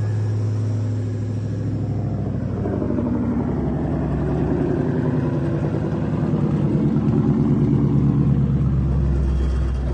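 A car exhaust burbles and throbs loudly at idle.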